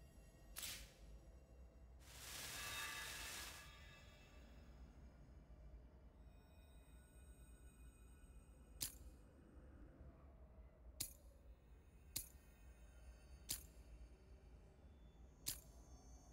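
Short game menu clicks sound every second or so.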